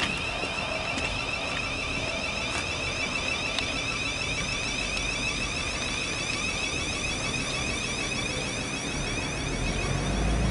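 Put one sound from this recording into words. An electric train rolls slowly in with a high whine.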